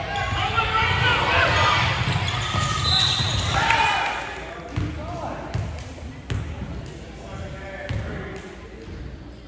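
A crowd of young players and spectators shout and chatter in an echoing gym.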